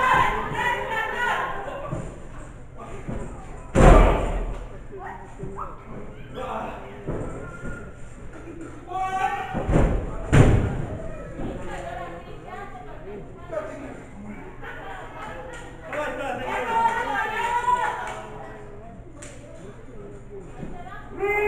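A crowd shouts and cheers nearby in an echoing hall.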